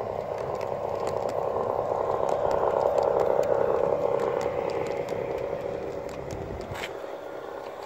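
A model train rumbles past close by on its track and fades away.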